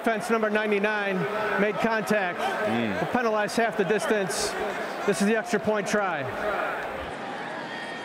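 A man announces a penalty through a stadium loudspeaker, echoing.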